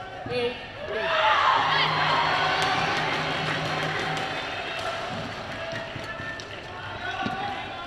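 A large crowd cheers and applauds in a big echoing hall.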